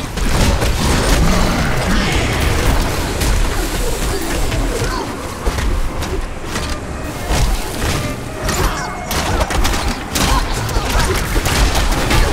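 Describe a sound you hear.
Blasts of magic burst and crackle.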